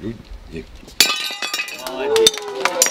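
A plate shatters on a hard floor.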